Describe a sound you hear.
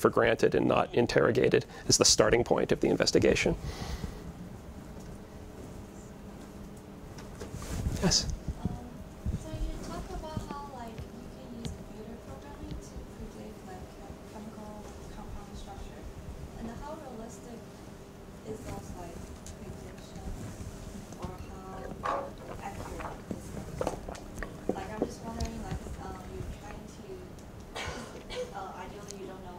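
A man lectures into a microphone in a large room, heard from the back of the audience.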